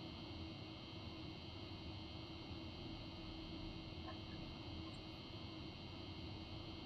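An electric locomotive hums steadily with a low rumble.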